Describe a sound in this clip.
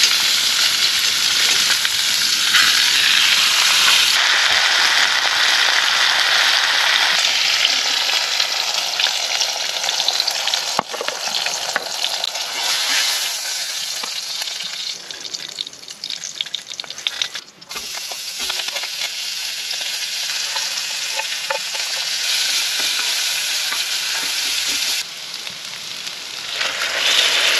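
Food sizzles and crackles loudly in a hot pan.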